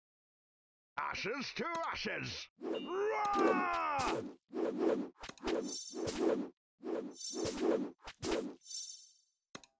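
Cartoon battle sound effects clash and thud in short bursts.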